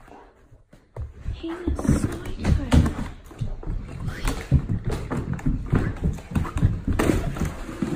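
A dog scrabbles and thumps about on a rug.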